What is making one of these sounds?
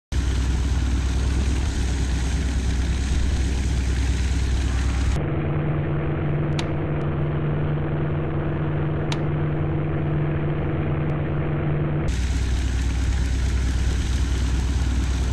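A propeller aircraft engine drones loudly and steadily.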